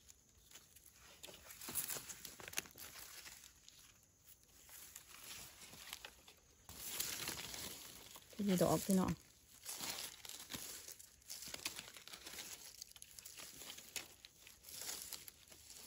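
A knife scrapes in the soil.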